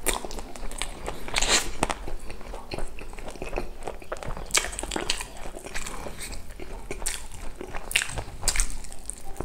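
Crispy pizza crust crackles as it is pulled apart.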